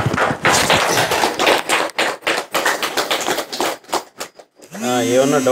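A man speaks quickly and with animation through a microphone.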